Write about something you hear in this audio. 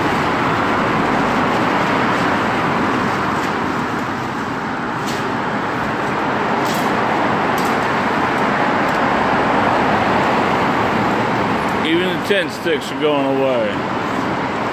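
Traffic roars steadily past.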